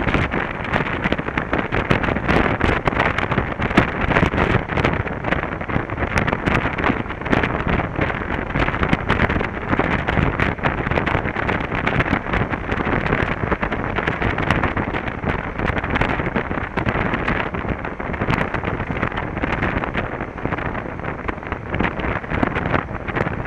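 Wind buffets loudly against a rider's helmet.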